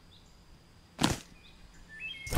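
A short click sounds once.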